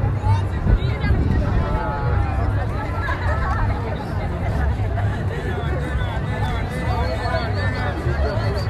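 A crowd of people talk and call out nearby outdoors.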